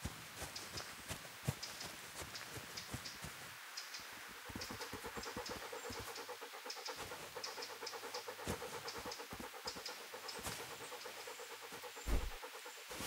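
Footsteps swish and rustle through tall grass.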